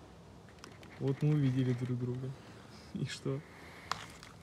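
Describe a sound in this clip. A man speaks in a muffled voice through a gas mask, close by.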